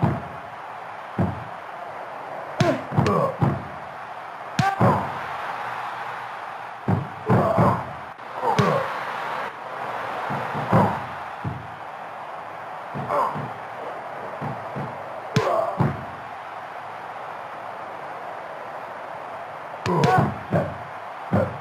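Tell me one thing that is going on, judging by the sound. Wrestlers' blows land with heavy thuds and slams.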